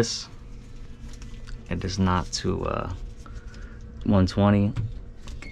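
Wires rustle and click softly as they are handled up close.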